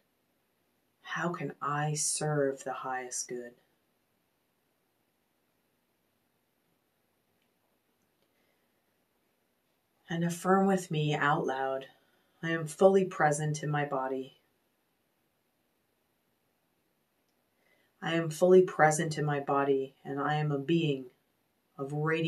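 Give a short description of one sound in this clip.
A woman speaks calmly and slowly into a close microphone, with long pauses.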